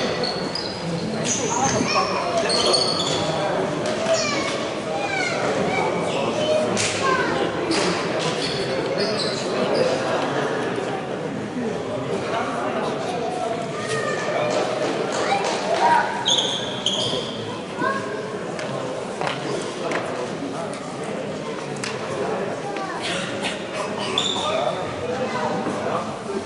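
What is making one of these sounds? A team of young players talk and shout in a huddle, echoing in a large hall.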